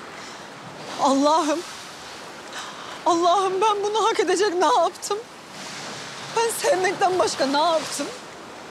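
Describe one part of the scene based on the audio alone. A young woman calls out loudly with emotion, nearby.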